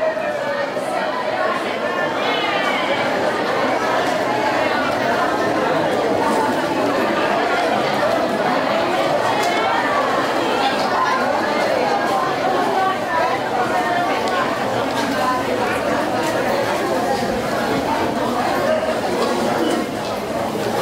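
A large crowd of men and women chatter loudly all at once in a big echoing hall.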